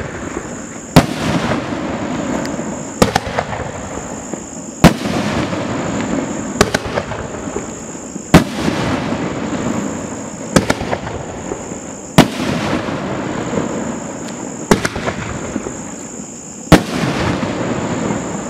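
Fireworks crackle and hiss after each burst.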